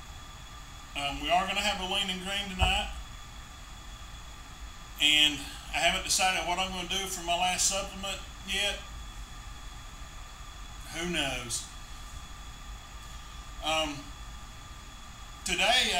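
A middle-aged man speaks close to a microphone with pauses, in an animated way.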